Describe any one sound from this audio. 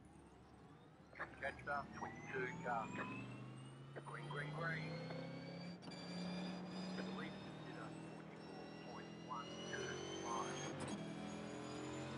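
A race car engine hums and rises steadily in pitch as it speeds up.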